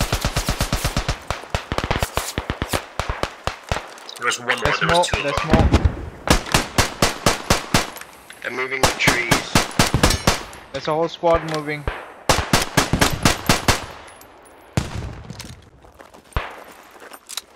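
A machine gun fires rapid bursts of shots close by.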